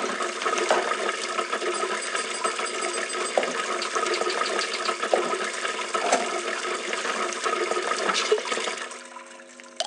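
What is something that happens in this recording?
Oil bubbles and sizzles loudly in a deep fryer.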